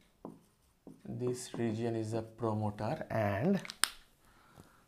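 A man speaks calmly, close by, explaining.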